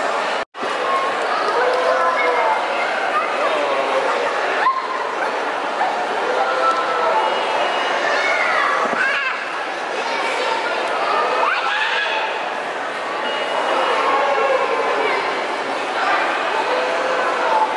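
Young children squeal and call out while playing close by.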